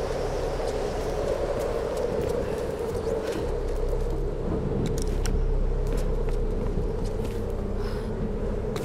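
Footsteps tread on hard ground.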